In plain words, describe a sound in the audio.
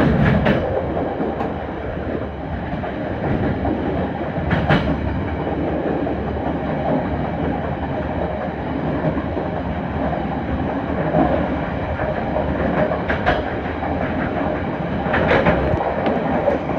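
A train rumbles steadily along the tracks.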